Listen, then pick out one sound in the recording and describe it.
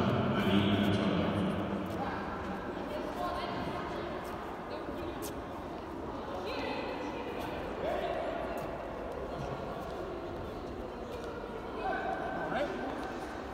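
A crowd of children and adults chatter in a large, echoing hall.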